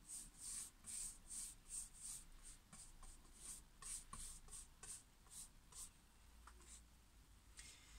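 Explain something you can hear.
A paintbrush dabs and scratches on a canvas in quick strokes.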